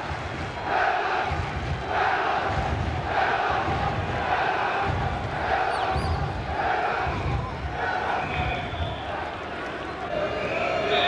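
A stadium crowd chants in rhythm.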